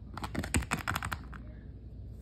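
Small plastic toys tap and clatter on a wooden floor.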